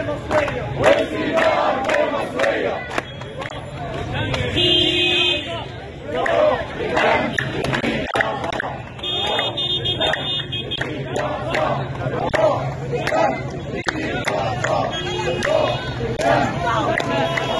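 A crowd claps hands in time.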